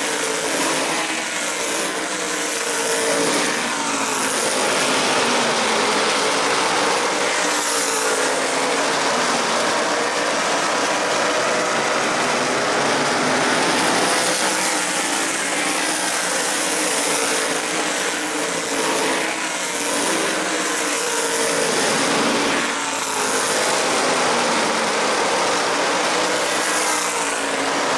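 A large crowd cheers in an outdoor stadium.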